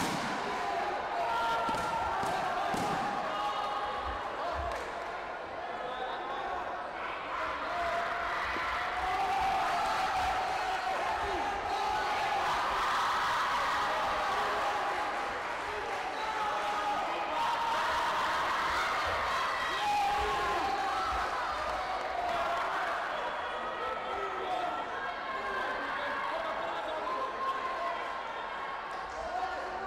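A crowd of spectators cheers and calls out in a large echoing hall.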